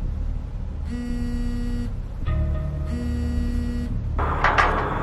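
A phone rings with a repeating electronic tone.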